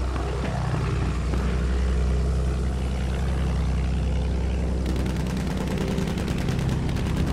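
A biplane's piston engine drones.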